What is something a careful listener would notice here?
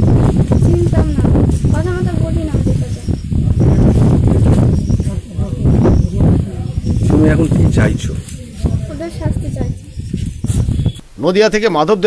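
A woman speaks with agitation close by.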